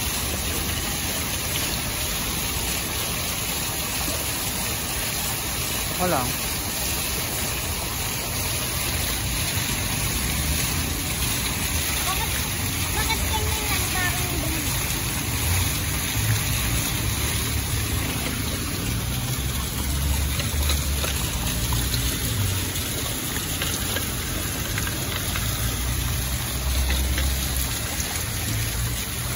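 Water from a fountain splashes steadily onto the ground.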